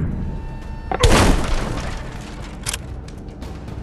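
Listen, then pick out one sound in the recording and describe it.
An explosion booms loudly close by.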